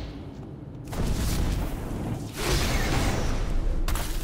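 Weapon blows strike and clang in combat.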